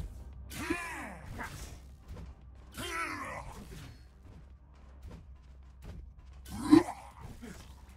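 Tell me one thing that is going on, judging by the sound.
A blade swishes through the air in heavy strikes.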